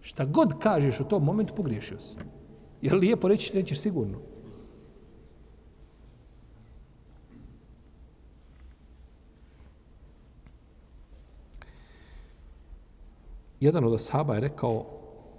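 An elderly man speaks with animation into a close microphone.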